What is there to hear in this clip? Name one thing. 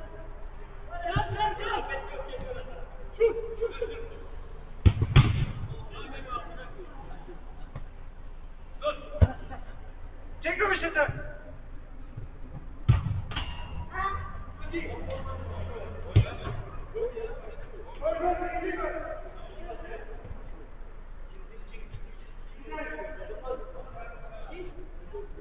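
Men shout and call out to each other across a large echoing hall.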